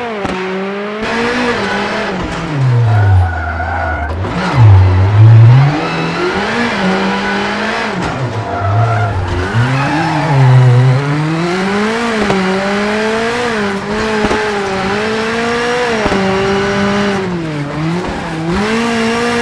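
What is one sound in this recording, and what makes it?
A rally car engine revs hard, rising and falling in pitch as the car races.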